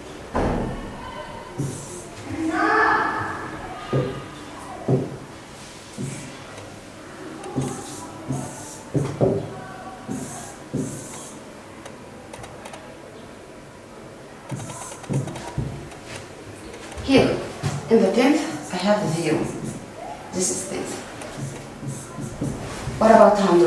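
A woman speaks calmly, as if explaining.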